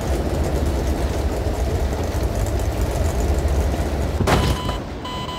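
A strong wind roars and rumbles close by.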